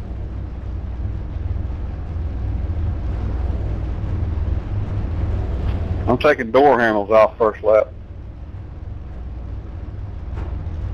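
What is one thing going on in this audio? A racing car engine rumbles low and steady.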